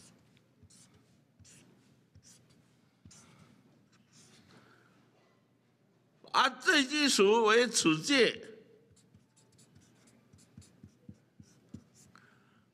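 A marker pen squeaks and scratches across paper.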